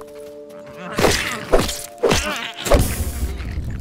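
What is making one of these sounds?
Heavy blows thud against a creature.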